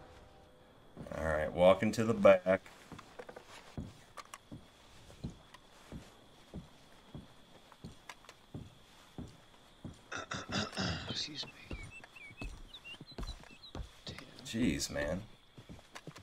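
A young man talks into a close microphone, casually.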